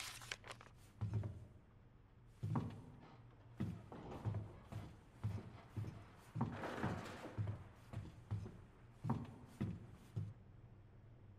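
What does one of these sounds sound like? Footsteps thud on a wooden floor at a steady walking pace.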